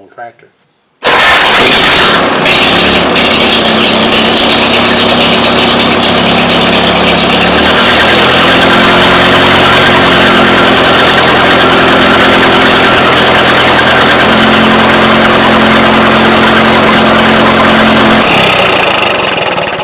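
An engine runs loudly and steadily.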